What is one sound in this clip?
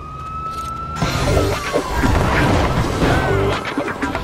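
A bright, sparkling game chime rings out and swells.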